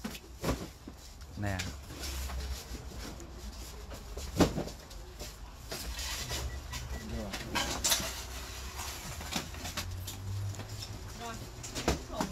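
A brush dabs softly against a fingernail.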